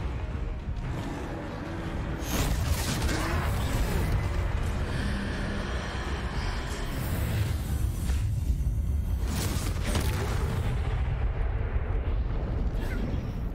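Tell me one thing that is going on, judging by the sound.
Spells crackle and blast loudly during a fight.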